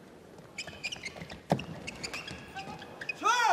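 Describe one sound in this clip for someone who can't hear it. A shuttlecock is struck sharply back and forth by rackets.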